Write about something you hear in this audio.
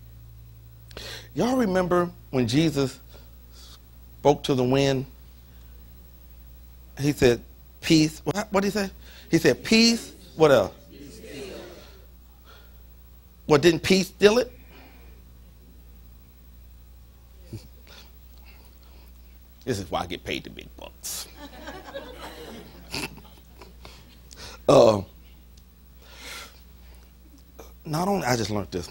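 A middle-aged man preaches with animation into a microphone, in bursts with pauses.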